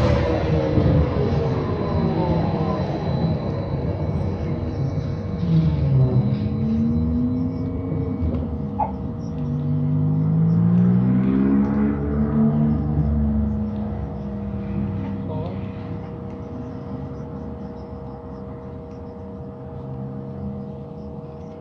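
A bus engine rumbles and whines, rising and falling in pitch.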